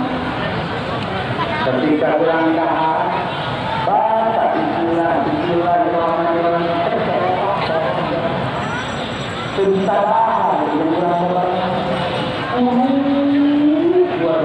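A large crowd murmurs and chatters in the background.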